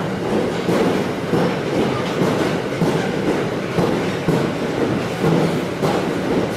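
A freight train rumbles past with a steady clatter of wheels on the rails.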